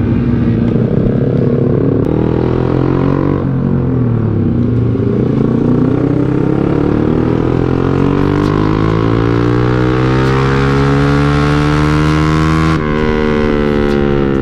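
A motorcycle engine hums up close, rising in pitch as it speeds up and briefly dropping when the rider shifts gear.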